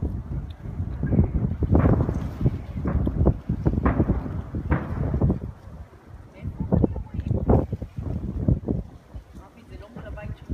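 Fireworks boom and crackle in the distance.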